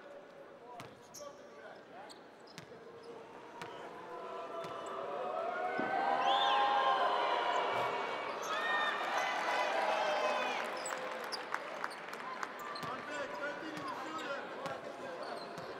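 A crowd cheers and whistles in a large indoor arena.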